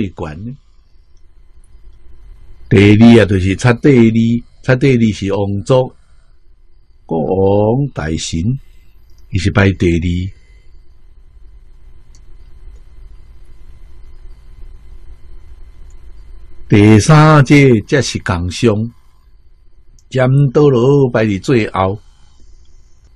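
An elderly man speaks calmly and warmly into a close microphone, with pauses between phrases.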